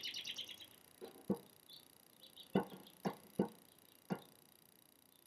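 Fingertips tap softly on a stiff plastic canvas.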